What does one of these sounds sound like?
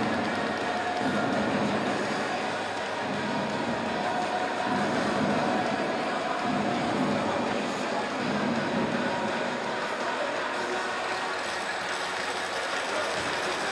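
Ice skates glide and scrape across the ice in a large echoing arena.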